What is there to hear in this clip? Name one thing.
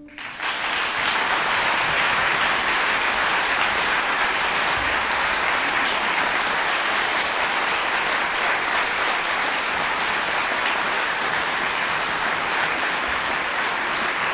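A large audience applauds steadily in an echoing concert hall.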